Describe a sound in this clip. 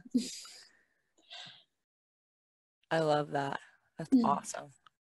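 A woman talks cheerfully over an online call.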